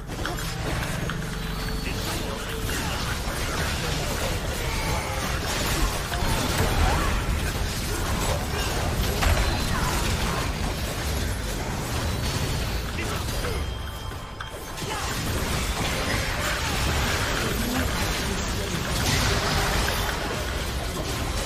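Video game combat effects crackle and clash in quick bursts.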